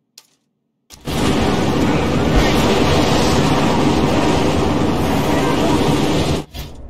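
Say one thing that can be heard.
A car engine roars loudly in a game.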